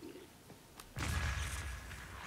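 A bomb explodes with a loud boom.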